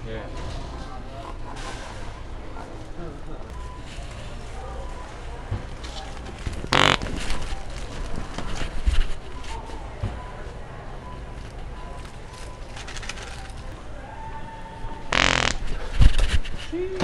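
Distant shoppers murmur and move about in a large, echoing store.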